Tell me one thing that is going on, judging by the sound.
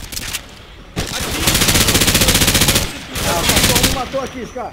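Rapid gunfire rattles out in loud bursts.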